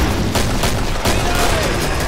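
A pistol fires sharp, loud shots in an echoing corridor.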